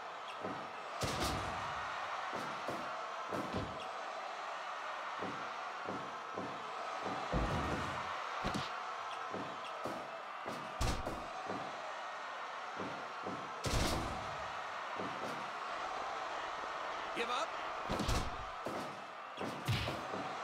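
Heavy thuds and slams of wrestlers hitting a ring mat sound repeatedly.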